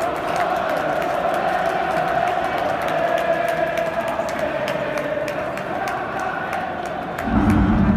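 A large stadium crowd sings and chants loudly in the open air.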